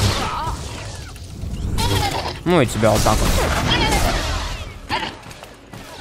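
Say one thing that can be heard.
Laser weapons zap and crackle in a fight.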